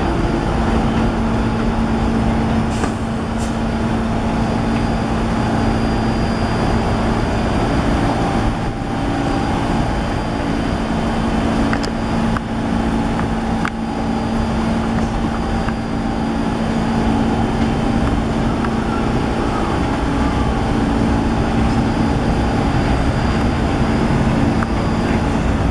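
Steel wheels squeal and clack over track switches.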